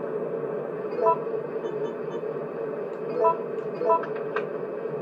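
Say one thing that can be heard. A menu beeps with short electronic blips.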